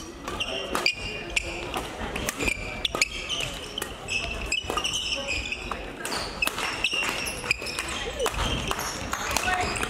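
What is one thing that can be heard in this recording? Players' feet thump and shuffle on the court.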